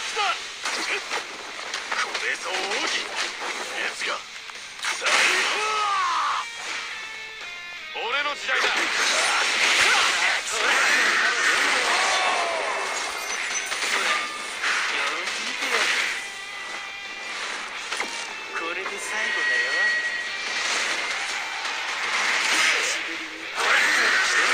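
Energy blasts whoosh and roar.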